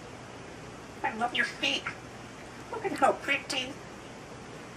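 A parrot talks in a voice like a person's, in two short bursts, close by.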